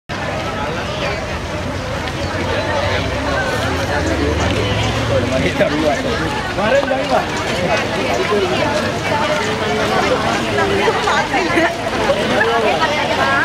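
A large crowd of men and women chatters and calls out outdoors as it walks along.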